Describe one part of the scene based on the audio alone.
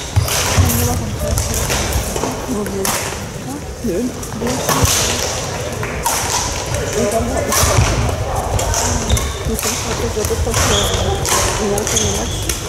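Badminton rackets smack shuttlecocks again and again in a large echoing hall.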